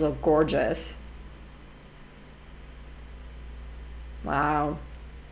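A woman speaks briefly and calmly, close to a microphone.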